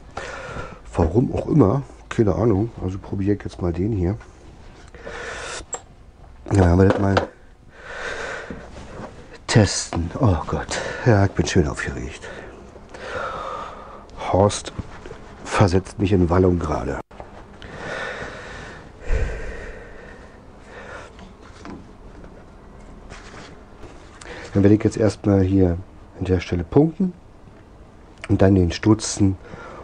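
A man talks calmly close by.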